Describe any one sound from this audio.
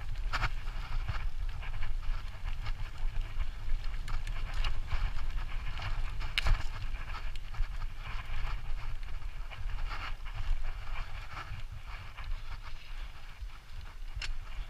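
Wind rushes and buffets loudly past the microphone.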